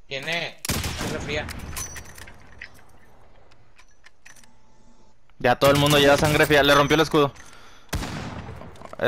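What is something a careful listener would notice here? A sniper rifle fires a loud, sharp shot that echoes.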